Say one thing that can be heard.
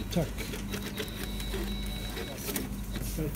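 A receipt printer whirs briefly.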